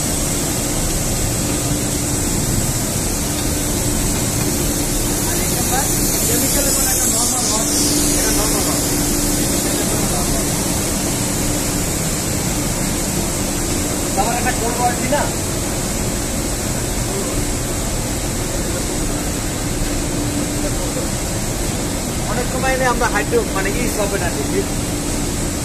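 A large industrial machine hums and whirs steadily.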